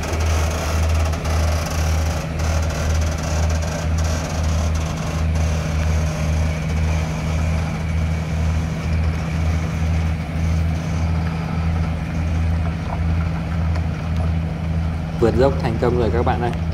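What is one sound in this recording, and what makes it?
Many large tyres roll slowly over a dirt road.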